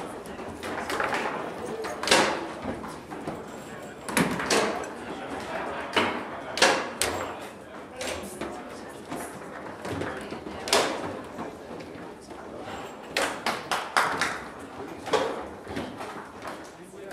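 Rods rattle and slide as players spin and shift them.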